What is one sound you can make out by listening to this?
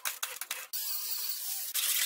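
An angle grinder whines against metal.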